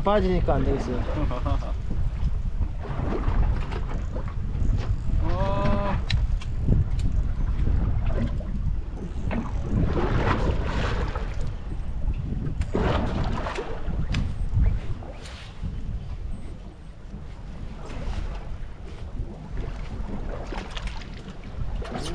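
A man talks nearby in a casual voice.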